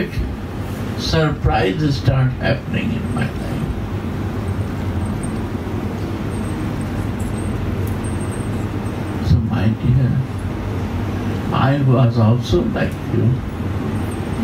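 An elderly man speaks calmly, close to a microphone.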